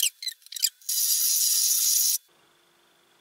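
An electric hand mixer whirs.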